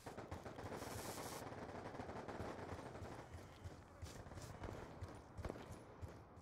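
Footsteps thud steadily on the ground.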